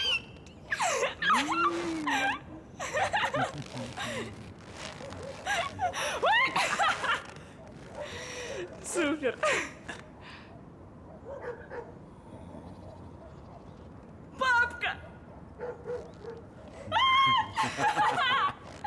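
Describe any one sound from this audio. A young man laughs and talks cheerfully close by.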